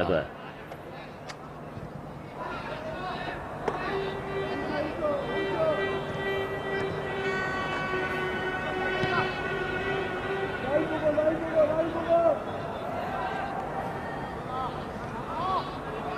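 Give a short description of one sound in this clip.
A large crowd chants and cheers across an open stadium.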